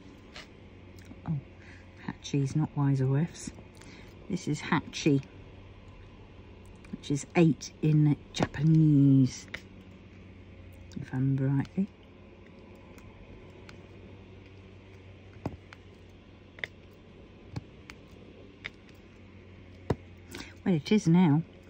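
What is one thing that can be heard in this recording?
A plastic pen tip taps softly as tiny beads are pressed into place.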